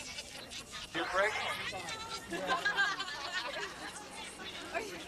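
A woman cheers excitedly.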